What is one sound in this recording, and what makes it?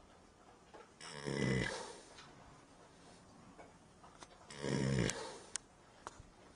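A horse snores loudly in slow, deep breaths.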